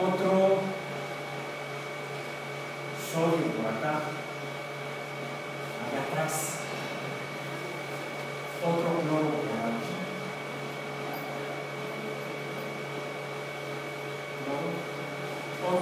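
A woman lectures calmly in a room, speaking in short phrases.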